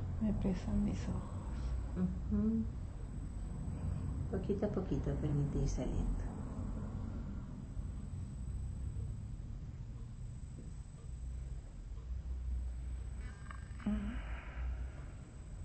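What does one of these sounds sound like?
A woman speaks softly and slowly close by.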